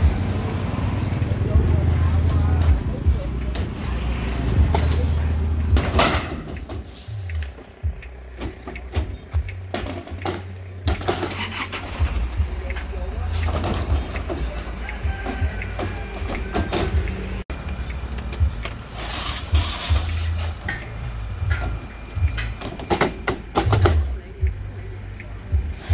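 Plastic pipes knock and clatter against each other as they are unloaded.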